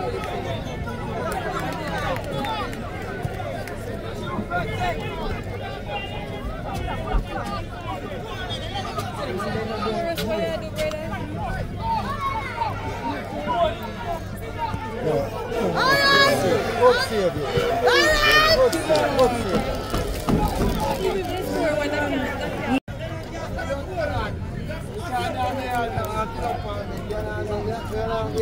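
A small crowd of spectators chatters and calls out outdoors.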